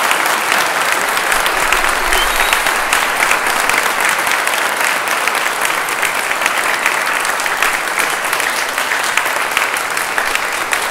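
An audience claps steadily in a large echoing hall.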